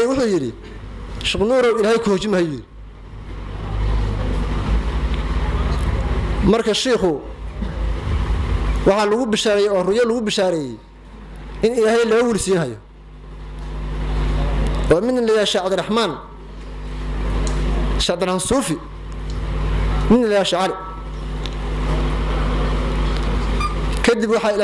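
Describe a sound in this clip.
A man recites in a slow, chanting voice through a microphone, in short phrases with pauses.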